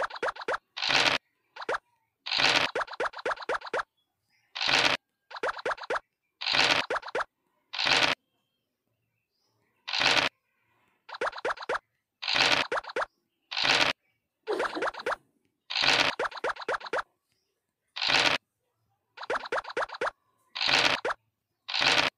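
Game pieces tap in quick runs as they hop from square to square.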